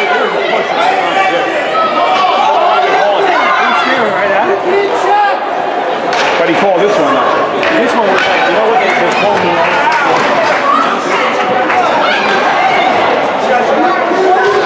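A crowd of young players and spectators chatter and call out in a large echoing rink.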